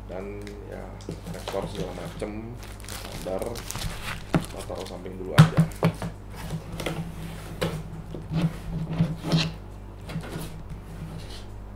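Cardboard and paper rustle and crinkle as packaging is handled.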